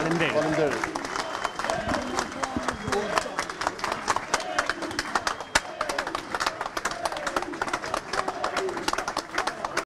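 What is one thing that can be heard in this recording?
A crowd claps rapidly outdoors.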